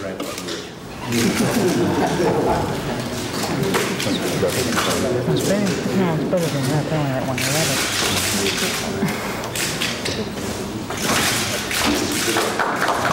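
An elderly man speaks cheerfully through a microphone.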